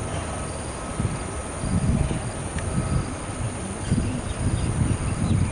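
Wind buffets a microphone outdoors.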